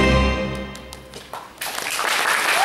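An ensemble of electronic keyboards holds a final chord that slowly fades away.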